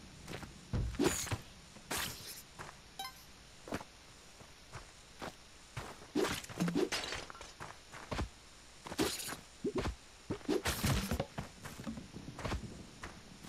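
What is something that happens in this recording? Short video game sound effects pop, thud and crack in quick bursts.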